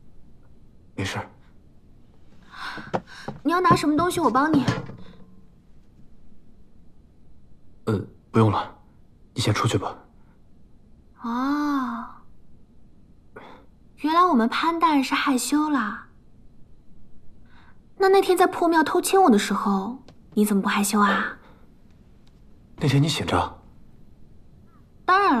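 A young woman speaks softly and playfully up close.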